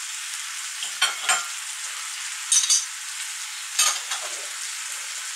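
A spoon scrapes and stirs food in a frying pan.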